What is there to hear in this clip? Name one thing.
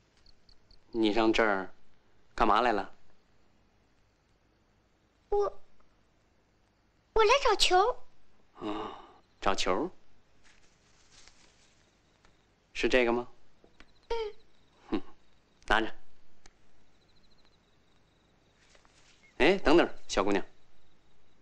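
A young man speaks in short, questioning phrases nearby.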